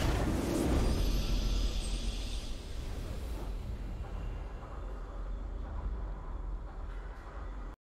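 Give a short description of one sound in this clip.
A triumphant fanfare plays.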